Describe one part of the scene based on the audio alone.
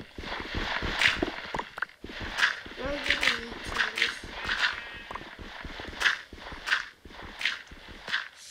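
Dirt crunches in short repeated bursts as blocks are dug away.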